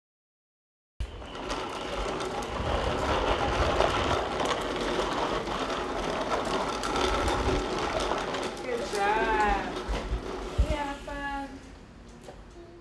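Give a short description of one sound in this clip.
Plastic tricycle wheels rumble and scrape on concrete.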